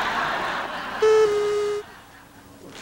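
A group of men sing a short held note.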